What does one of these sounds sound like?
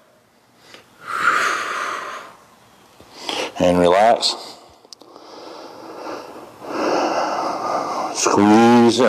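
A man breathes heavily with effort nearby.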